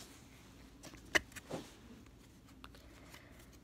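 Cards rustle and flick between fingers.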